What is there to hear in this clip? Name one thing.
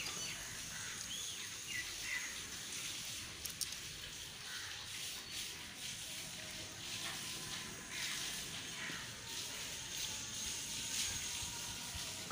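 A screwdriver clicks as it tightens a metal hose clamp.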